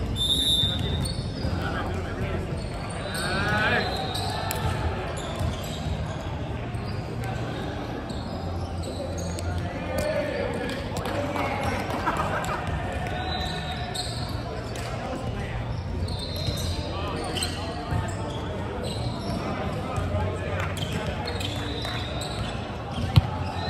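A volleyball thuds as it is struck.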